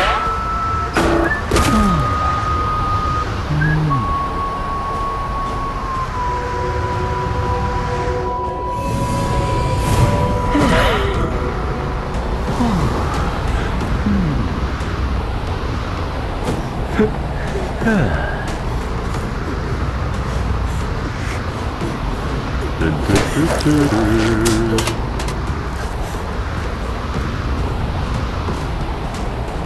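Heavy footsteps thud steadily over the ground.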